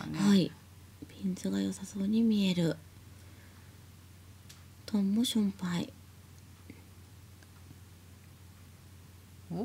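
Mahjong tiles click softly as they are set down on a table.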